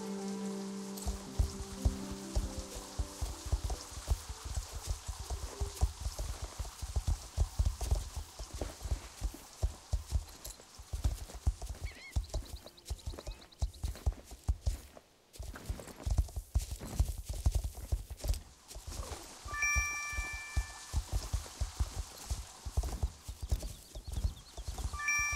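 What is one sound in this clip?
A horse's hooves thud in a quick, steady rhythm.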